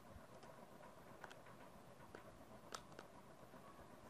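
Calculator buttons click as they are pressed.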